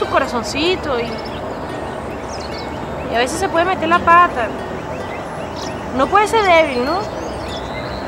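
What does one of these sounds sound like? A young woman speaks close by in an upset tone.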